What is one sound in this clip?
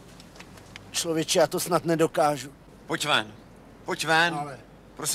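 A middle-aged man speaks close by, firmly.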